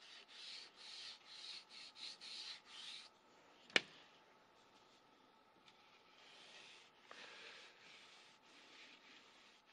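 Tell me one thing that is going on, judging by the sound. Sandpaper rubs back and forth along a wooden stick in quick strokes.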